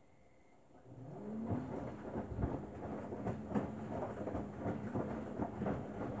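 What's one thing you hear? Wet laundry tumbles and sloshes inside a washing machine drum.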